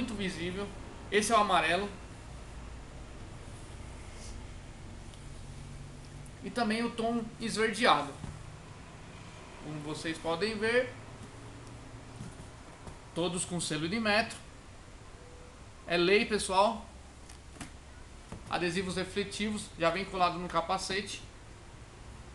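A young man talks calmly and clearly, close by, in short bursts.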